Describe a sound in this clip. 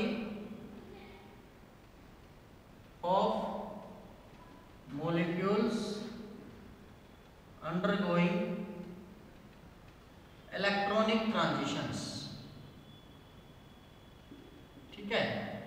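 A man speaks calmly and clearly, pausing between phrases.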